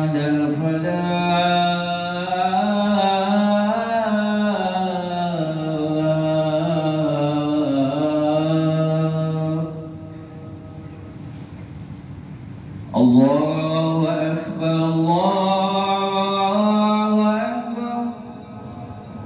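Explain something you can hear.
A man chants melodically through a loudspeaker in a large echoing hall.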